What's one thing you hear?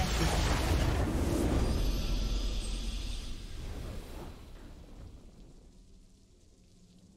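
A victory fanfare swells and then fades.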